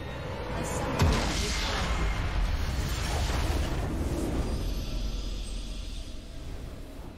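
A loud magical explosion booms and rumbles.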